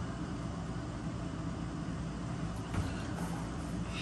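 A man kneels down onto a foam play mat with a soft thump.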